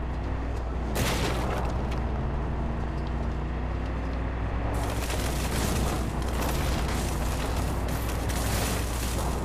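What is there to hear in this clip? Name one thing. Tyres rumble over rough ground.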